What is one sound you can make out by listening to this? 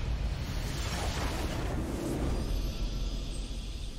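A triumphant video game victory fanfare plays.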